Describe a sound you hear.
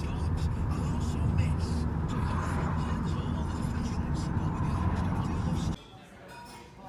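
A car engine rumbles loudly from inside the cabin.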